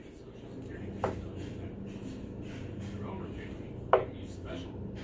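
A dart thuds into a dartboard.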